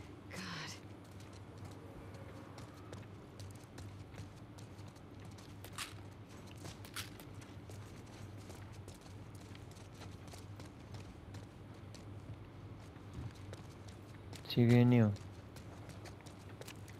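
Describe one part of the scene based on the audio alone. Footsteps scuff softly on a hard floor.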